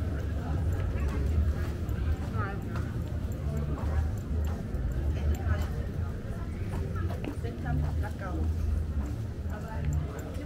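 Distant voices murmur in a busy pedestrian street.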